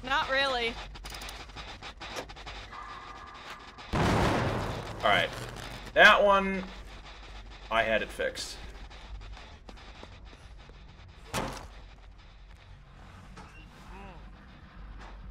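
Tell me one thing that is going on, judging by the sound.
A middle-aged man speaks with animation into a close microphone, in short bursts.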